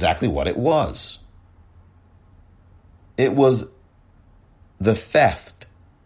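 A man speaks calmly into a microphone, in short bursts with pauses.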